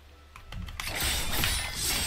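Swords clash.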